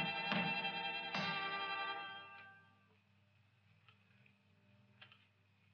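Playing cards are laid down on a table.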